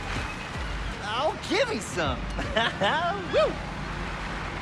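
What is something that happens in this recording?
A man speaks with excitement.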